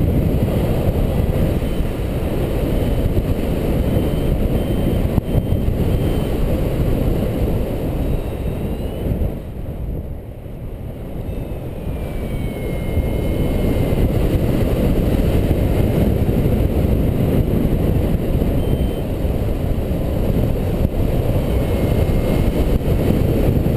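A flight instrument beeps in short rising tones now and then.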